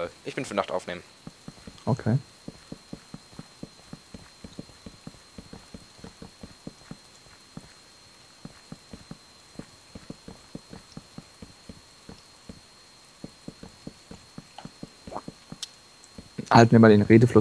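Wooden blocks knock softly as they are placed, one after another.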